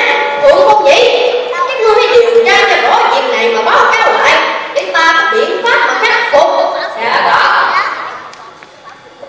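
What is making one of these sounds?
A young boy shouts lines dramatically through a loudspeaker in an echoing hall.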